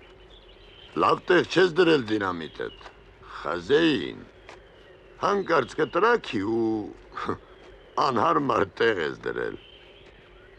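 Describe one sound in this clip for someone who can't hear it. A middle-aged man speaks calmly, close by.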